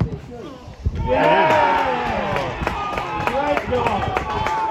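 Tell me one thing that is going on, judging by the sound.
Spectators near by cheer loudly.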